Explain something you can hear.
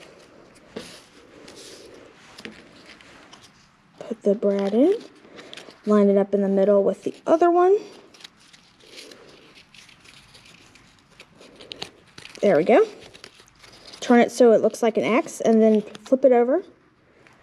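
Cardboard strips rustle and tap softly as they are handled.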